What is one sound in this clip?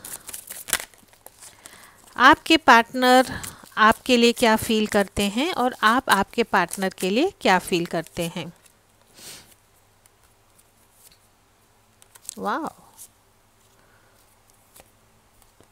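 Playing cards shuffle and flick together.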